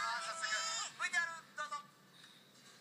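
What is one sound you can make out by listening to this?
A young man speaks with animation through a television speaker.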